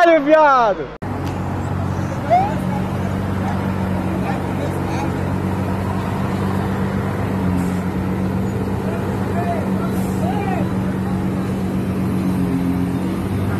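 A sports car engine idles with a deep steady rumble.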